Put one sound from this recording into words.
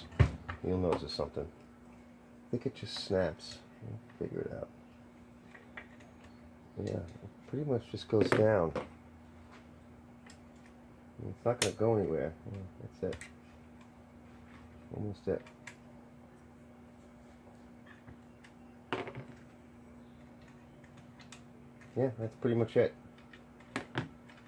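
Small metal parts click and rattle as they are handled.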